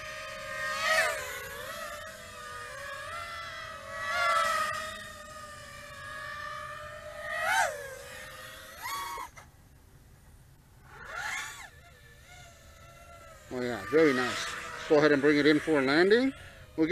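Small drone motors whine, their pitch rising and falling sharply as the drone speeds up and swoops.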